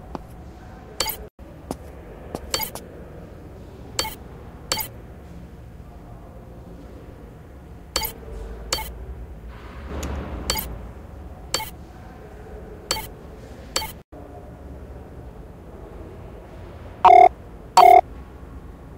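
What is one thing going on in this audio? Short interface clicks and blips sound again and again.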